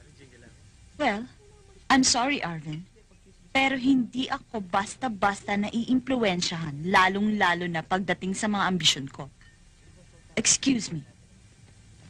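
A young woman speaks sharply and with feeling, close by.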